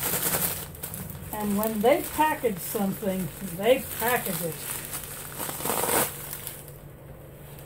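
Paper rustles and crinkles in a woman's hands.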